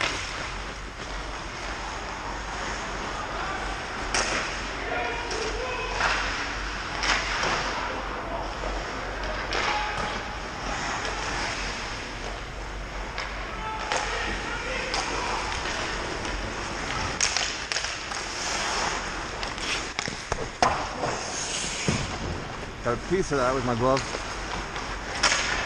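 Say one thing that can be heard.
Ice skates scrape and carve across the ice in a large echoing hall.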